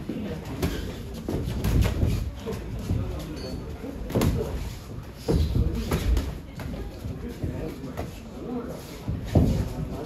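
Sneakers squeak and shuffle on a padded ring floor.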